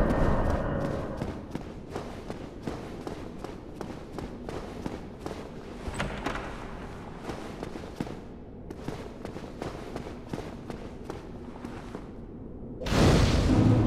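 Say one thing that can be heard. Armoured footsteps clatter quickly on a stone floor.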